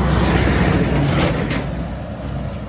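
A truck rumbles past close by.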